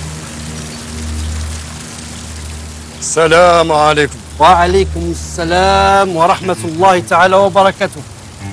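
Water splashes steadily from a fountain spout into a basin.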